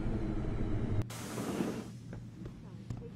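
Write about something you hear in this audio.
Elevator doors slide open with a whoosh.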